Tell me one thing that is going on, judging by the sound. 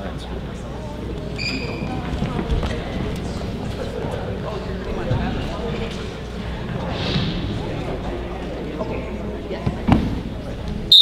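Footsteps thud softly on a wrestling mat.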